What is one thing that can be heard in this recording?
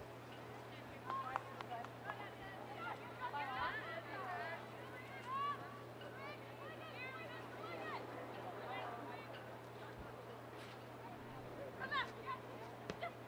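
Young women shout to each other from a distance across an open field.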